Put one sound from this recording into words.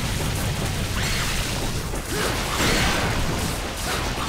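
A sword whooshes and slashes through the air.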